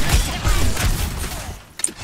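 An explosion bursts with a fiery roar.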